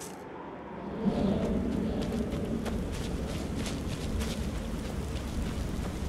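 Footsteps crunch on a dirt floor.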